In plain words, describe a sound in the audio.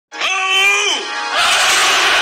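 A man lets out a loud battle cry.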